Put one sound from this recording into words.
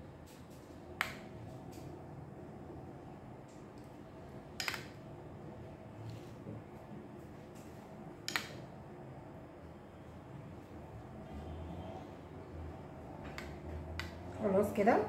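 A spoon clinks against a plate.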